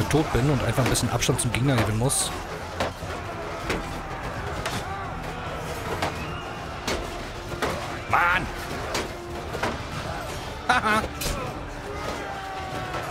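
Weapons clash and clang in a battle.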